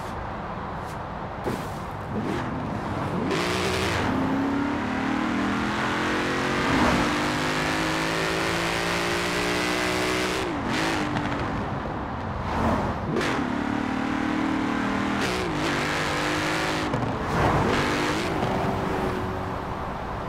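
A sports car engine roars loudly, revving up through the gears with sharp shifts.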